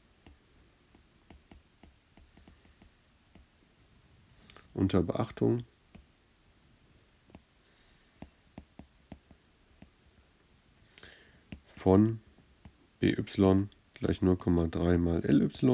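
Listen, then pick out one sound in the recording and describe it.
A stylus taps and scratches lightly on a tablet.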